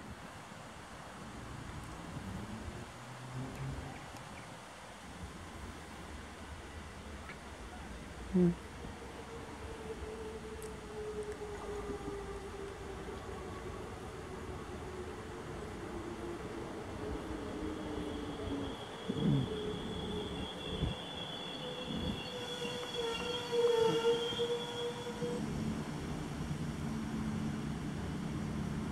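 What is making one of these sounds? A diesel railcar approaches and slows as it pulls into a station.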